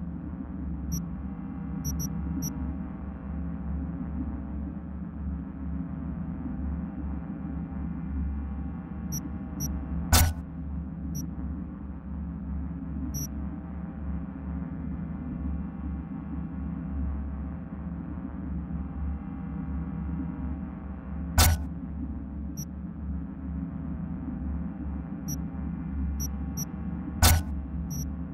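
Short, soft menu clicks sound now and then as options are switched.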